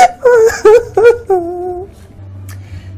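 A woman cries out in distress.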